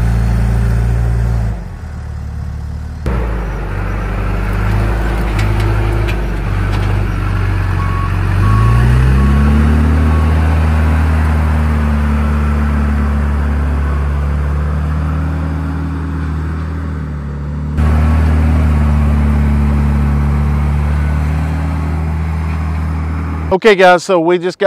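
A backhoe loader's diesel engine rumbles and revs as it pushes dirt.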